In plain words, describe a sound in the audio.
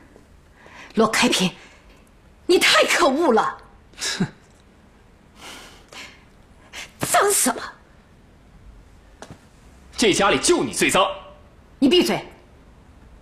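A middle-aged woman speaks angrily and close by.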